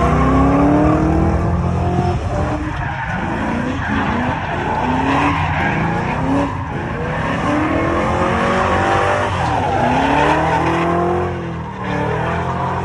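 A car engine revs hard and roars, rising and falling.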